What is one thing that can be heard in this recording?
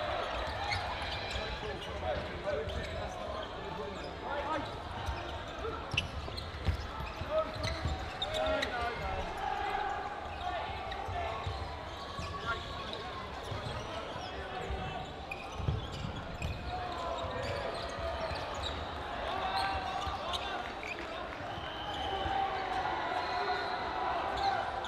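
Players call and shout to each other across an echoing hall.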